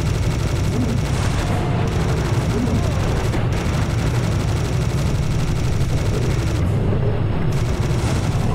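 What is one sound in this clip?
A minigun fires in a rapid, continuous stream.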